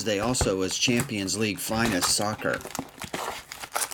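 A cardboard box flap is pulled open.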